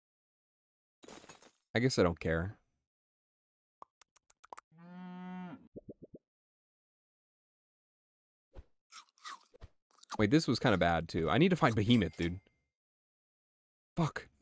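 Cartoonish game sound effects chime and pop in short bursts.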